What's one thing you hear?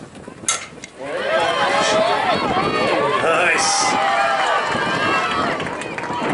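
A crowd of young women cheers and shouts loudly.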